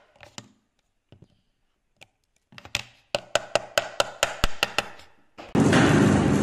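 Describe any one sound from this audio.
A chisel taps and scrapes into wood.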